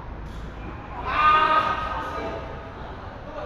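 A man calls out loudly in a large echoing hall.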